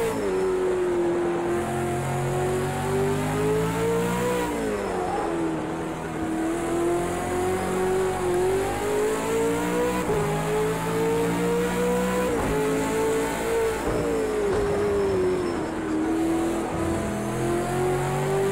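A racing car engine roars steadily, its pitch rising through each gear and dropping at each shift.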